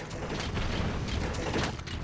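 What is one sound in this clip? A heavy mechanical walker stomps with loud metallic footfalls.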